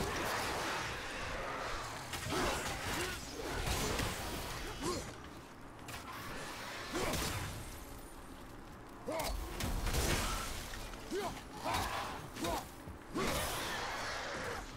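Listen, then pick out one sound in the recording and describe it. Heavy blows and weapon strikes land in a fight.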